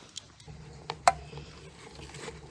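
A glass jar knocks against a metal pot.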